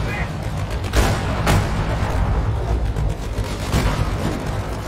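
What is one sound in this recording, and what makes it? Tank cannons fire with loud booming blasts.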